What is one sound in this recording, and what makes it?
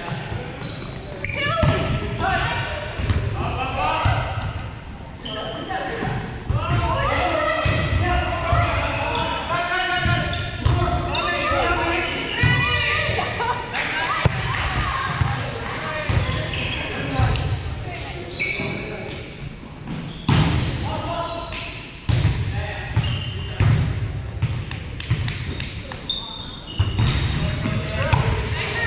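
Players' voices call out and chatter in a large echoing gym.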